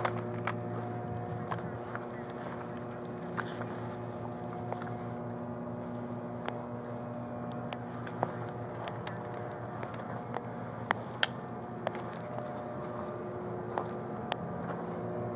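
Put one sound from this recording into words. Equipment clinks and rattles close by as someone moves.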